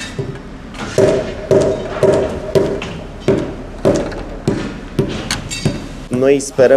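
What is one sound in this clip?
A mallet knocks steadily on a paving stone.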